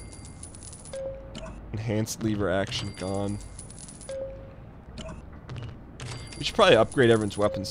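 Game sound effects chime and click.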